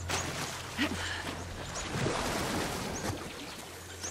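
Water splashes and sloshes as a swimmer moves through it.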